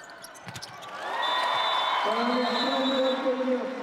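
A crowd cheers in a large echoing arena.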